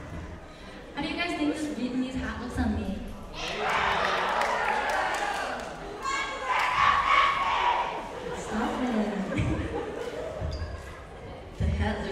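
A young woman speaks through a microphone in a large echoing hall.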